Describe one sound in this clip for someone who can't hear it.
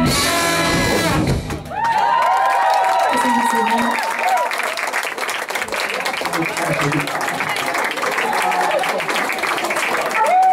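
A live band plays loudly with brass horns in a room that echoes.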